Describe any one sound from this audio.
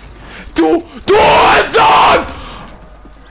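A spike trap springs with a loud crashing burst.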